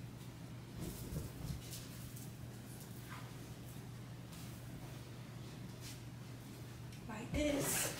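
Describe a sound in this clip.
Fabric rustles as a blanket is shaken out and spread.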